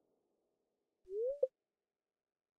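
A short rising electronic chime sounds, ending in a click.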